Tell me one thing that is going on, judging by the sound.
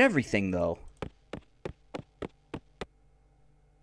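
Quick cartoon footsteps patter across a floor.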